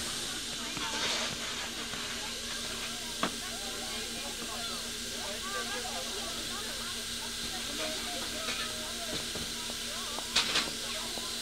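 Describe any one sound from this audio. Metal clanks sharply on a locomotive.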